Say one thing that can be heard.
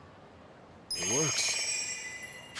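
A bright sparkling chime rings out and fades.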